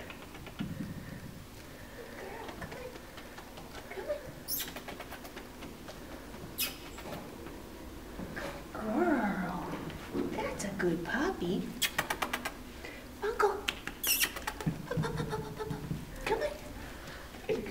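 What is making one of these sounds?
A woman talks softly and playfully nearby.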